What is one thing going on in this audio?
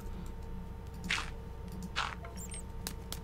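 Dirt blocks are set down with soft, gritty crunches.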